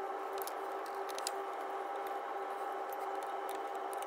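A wrench clicks and clinks against metal engine parts.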